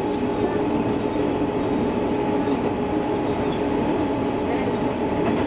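A train's motor hums with a steady tone.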